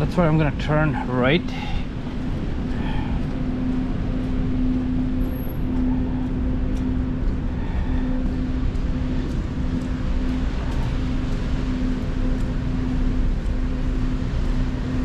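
A car engine hums steadily nearby.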